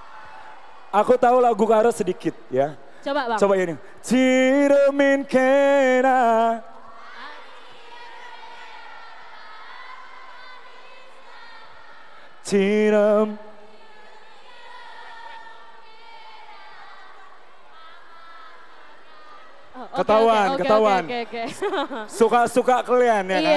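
A young man sings loudly through a microphone and loudspeakers.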